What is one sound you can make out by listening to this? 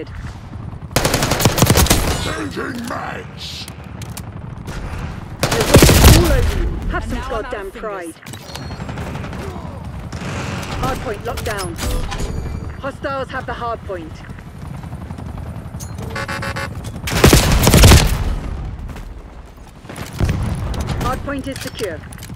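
Gunfire bursts loudly in short volleys.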